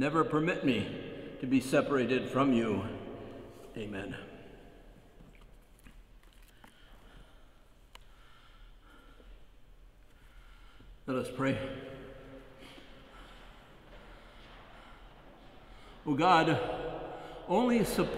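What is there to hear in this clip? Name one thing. An elderly man speaks slowly and calmly into a microphone in a large echoing hall.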